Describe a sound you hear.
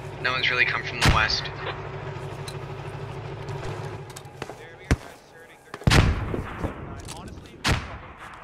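A rifle fires sharp, loud shots that echo away.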